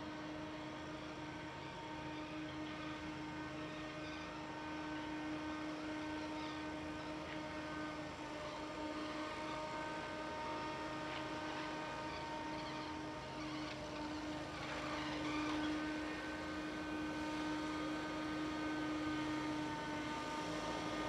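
A tractor engine rumbles steadily and grows louder as it approaches.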